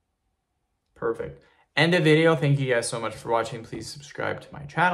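A young man speaks calmly and close to the microphone.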